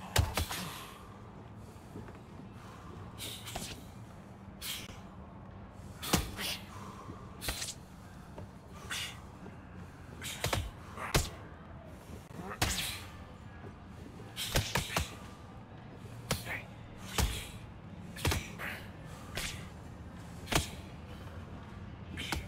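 Boxing gloves thud against bodies in sharp, irregular punches.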